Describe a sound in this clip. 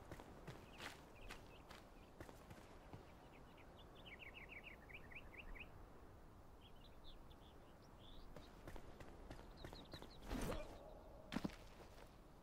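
Bare footsteps patter on stone and wood.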